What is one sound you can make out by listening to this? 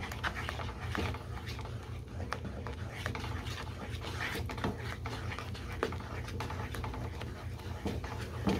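Batter sizzles softly in a hot pan.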